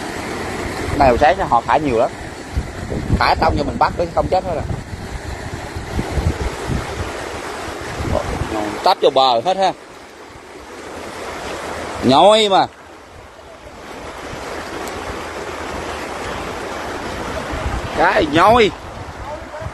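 A man shouts out loudly from close by.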